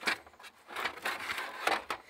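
Plastic trim clicks and rattles as a hand handles it.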